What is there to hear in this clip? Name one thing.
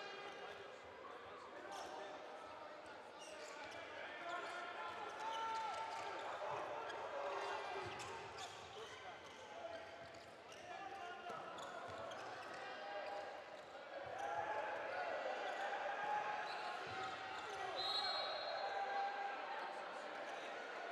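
A ball thuds as players pass and bounce it on the court.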